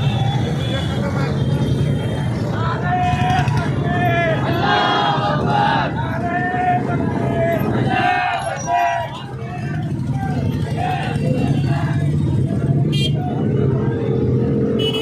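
A crowd of men shouts and chants outdoors.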